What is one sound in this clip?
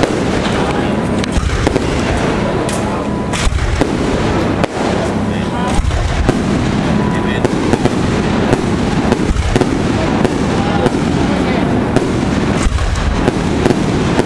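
Fireworks crackle and fizz.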